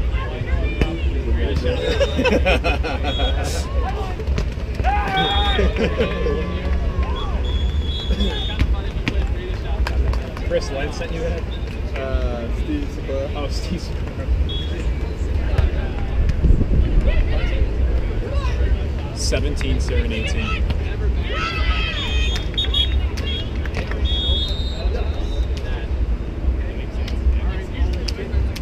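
Men call out to each other at a distance.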